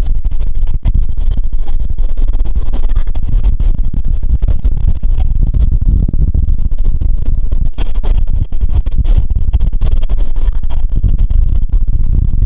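A train rumbles loudly along elevated tracks.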